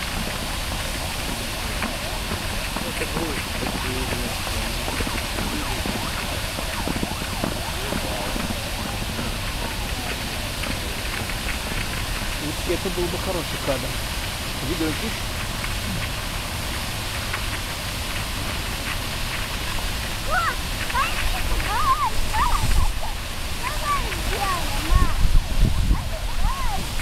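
A fountain sprays water that patters down onto a pond.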